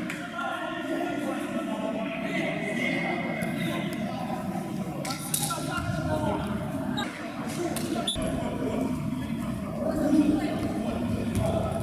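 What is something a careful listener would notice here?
A ball thuds on a hard floor.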